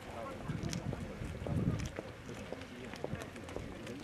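A man talks calmly while walking outdoors.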